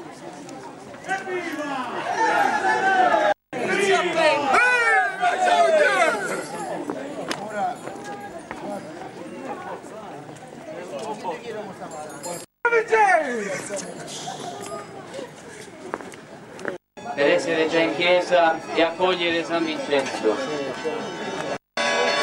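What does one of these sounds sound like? A crowd of men and women call out and chant loudly nearby.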